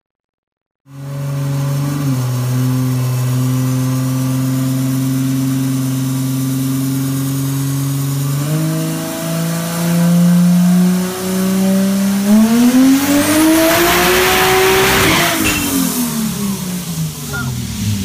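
A loud car engine idles and then revs up hard, roaring and rising in pitch.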